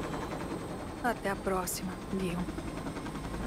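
A woman speaks calmly, heard through a headset radio.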